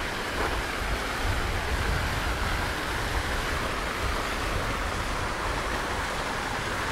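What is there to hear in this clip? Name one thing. Water from a fountain splashes steadily into a basin.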